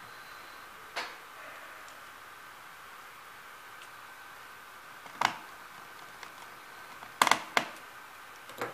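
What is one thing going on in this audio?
Small plastic parts click and tap under fingers.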